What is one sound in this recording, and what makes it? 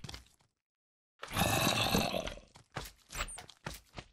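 A zombie groans close by.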